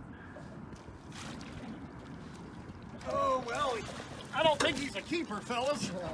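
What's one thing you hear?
Water splashes as a fish is netted.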